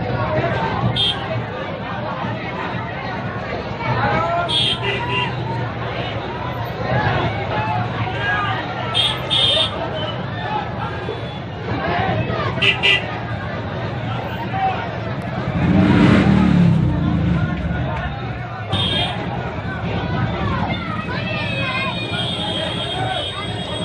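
A large crowd of men chants and shouts outdoors.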